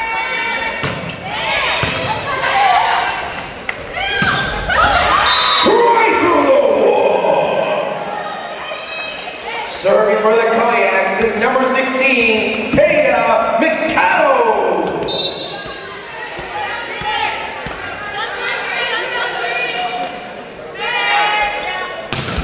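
A volleyball is struck with loud smacks.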